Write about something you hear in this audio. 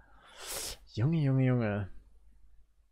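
A man speaks in a deep, low voice.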